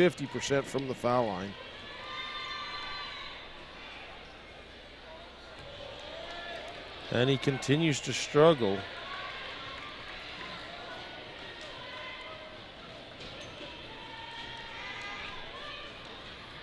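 A large crowd murmurs in an echoing gym.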